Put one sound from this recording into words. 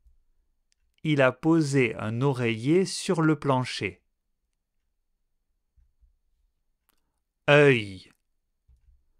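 A man speaks clearly and with animation into a close microphone.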